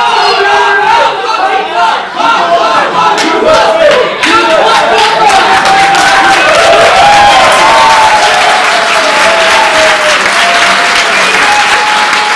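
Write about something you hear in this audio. A large crowd claps and applauds.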